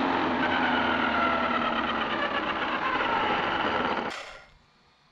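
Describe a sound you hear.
A toy car's electric motor whines as its wheels spin in the air.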